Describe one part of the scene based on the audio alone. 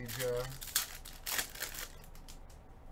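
A foil card pack wrapper crinkles in gloved hands.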